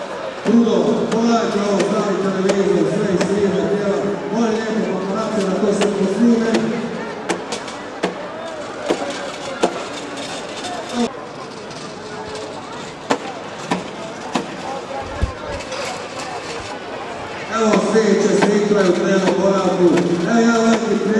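Rain patters on umbrellas.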